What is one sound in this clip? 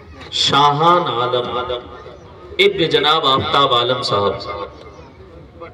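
A man speaks loudly into a microphone over a loudspeaker.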